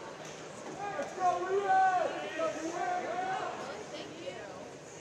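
Men talk nearby in a large echoing hall.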